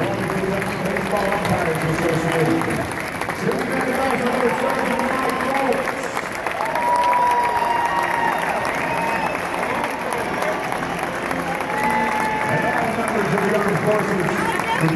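A large crowd cheers and applauds in an open stadium.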